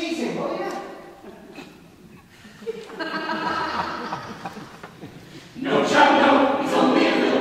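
A choir of young men and women sings together in a large, echoing hall.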